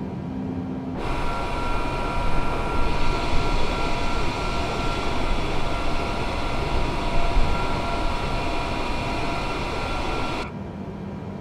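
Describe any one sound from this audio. Jet engines roar loudly and steadily from outside an airliner.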